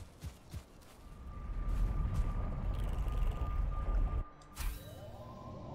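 A fiery portal roars with a deep, rumbling whoosh.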